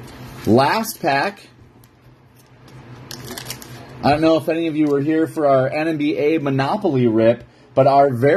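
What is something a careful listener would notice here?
A foil wrapper crinkles as it is handled.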